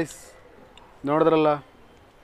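A young man speaks loudly with animation close by.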